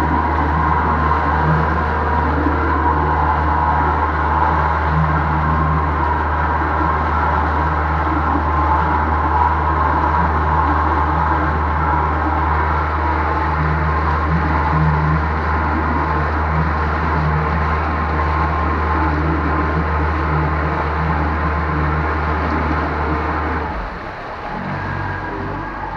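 Water churns and splashes in a boat's wake.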